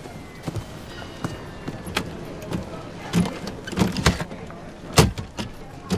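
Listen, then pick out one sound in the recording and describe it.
A suitcase thuds and bangs into an overhead bin.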